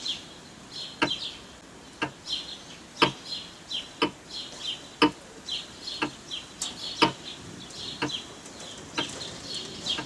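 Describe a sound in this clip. A clock ticks steadily, once a second.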